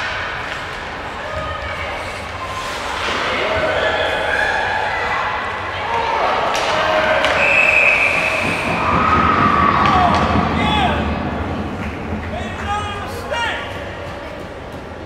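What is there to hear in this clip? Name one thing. Spectators near by shout and cheer.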